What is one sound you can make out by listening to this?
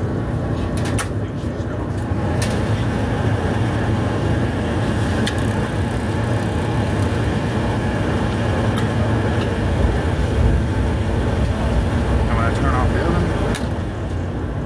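An igniter clicks sharply a few times.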